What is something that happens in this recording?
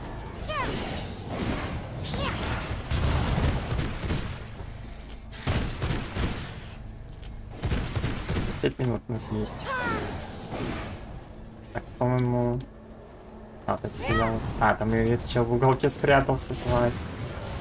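Monsters screech and growl in a game fight.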